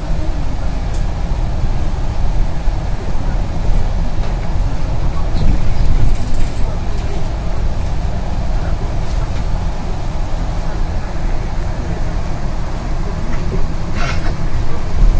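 The bus interior rattles and clicks now and then.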